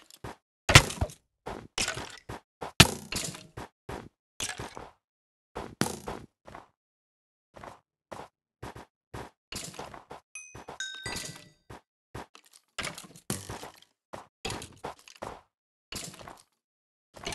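Footsteps crunch on snow in short, uneven bursts.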